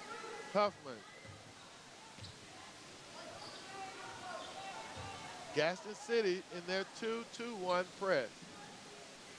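Spectators shout and cheer in a large echoing gym.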